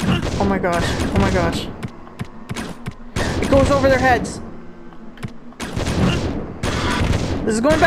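Gunshots fire in loud bursts.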